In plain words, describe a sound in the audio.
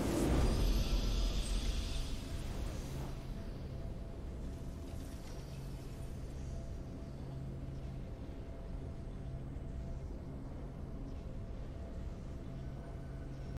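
A game's victory fanfare plays with a rising swell.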